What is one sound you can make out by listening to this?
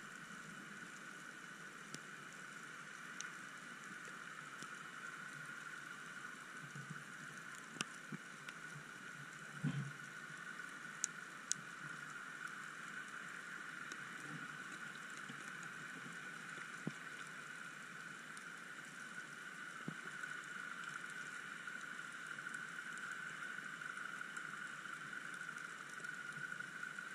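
Water hisses and murmurs steadily, muffled as if heard underwater.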